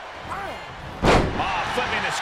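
A heavy body slams onto the wrestling mat with a loud thud.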